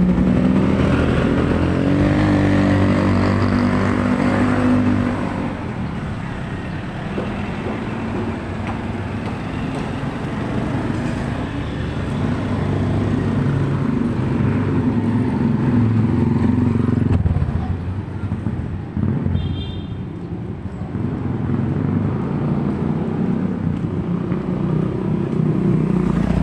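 Motorcycle engines putter past close by.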